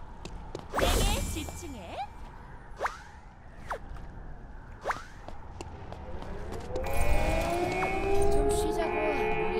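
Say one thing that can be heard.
Guns fire in short bursts with sharp whooshing effects.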